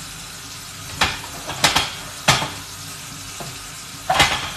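A knife chops on a cutting board with sharp knocks.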